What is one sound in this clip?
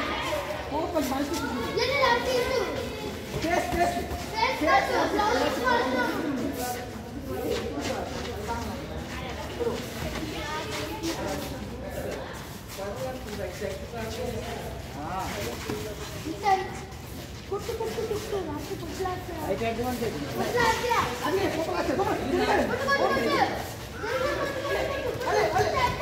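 Boxing gloves thump against each other and bodies.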